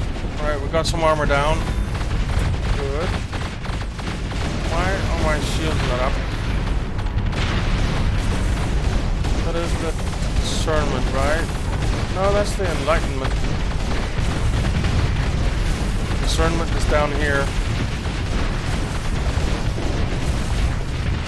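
Laser weapons fire in rapid bursts.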